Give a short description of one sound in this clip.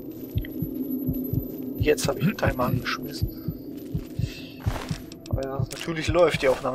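Footsteps crunch on rough ground at a steady walking pace.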